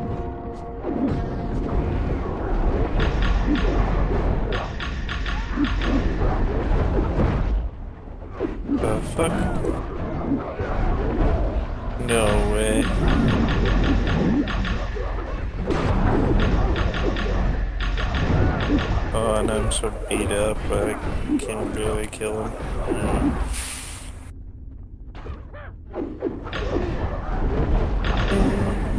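Magic spells blast and crackle in a fast, busy fight.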